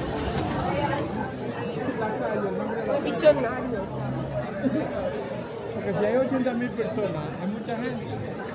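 An elderly man talks close to a microphone.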